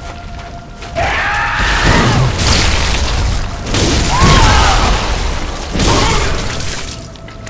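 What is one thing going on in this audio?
A monster shrieks loudly and harshly.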